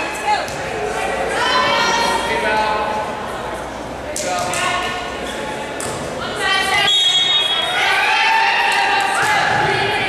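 Young women shout and call out to each other.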